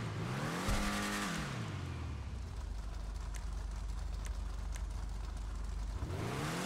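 A sports car engine revs up and down, then settles into a low rumbling idle.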